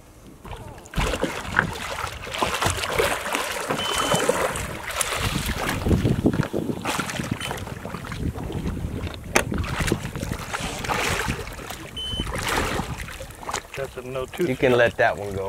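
A large fish splashes and thrashes at the water's surface close by.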